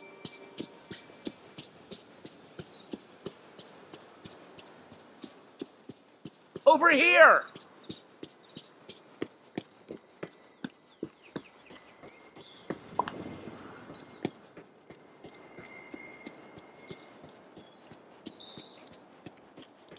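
Footsteps patter quickly and evenly on the ground.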